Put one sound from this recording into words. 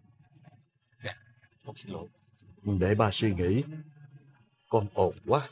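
A middle-aged man speaks tensely close by.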